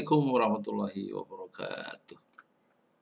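An adult man speaks calmly and closely into a microphone, then falls silent.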